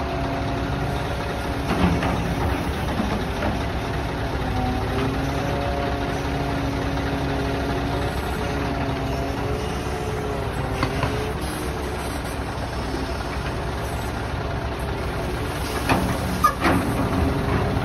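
A hydraulic crane engine hums steadily.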